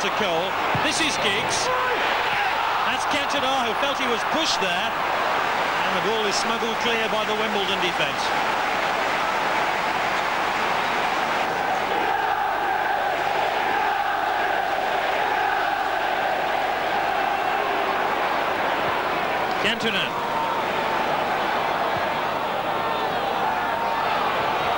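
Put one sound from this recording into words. A large stadium crowd roars and chants loudly outdoors.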